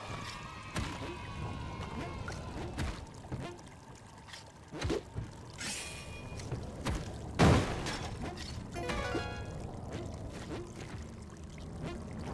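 Short video game sound effects pop and thud throughout.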